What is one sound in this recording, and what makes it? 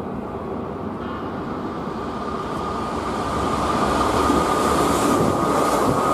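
A train's brakes squeal as the train slows to a stop.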